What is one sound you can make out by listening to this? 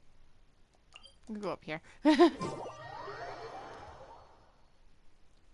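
A bright magical whoosh and chime rings out, then fades.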